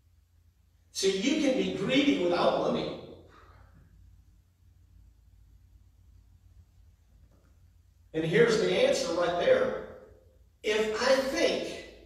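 A middle-aged man speaks calmly through a microphone in an echoing hall.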